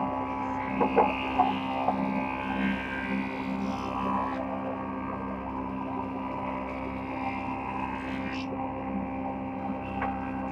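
Wooden boards knock and clatter as they feed through a planer.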